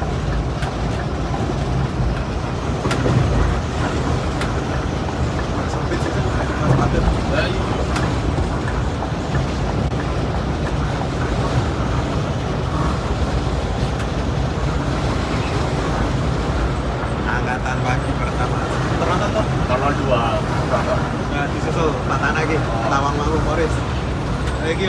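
A heavy engine drones steadily inside a moving cab.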